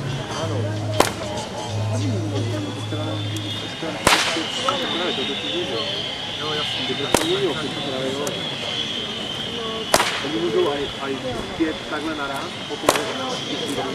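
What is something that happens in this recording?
A whip cracks sharply several times outdoors.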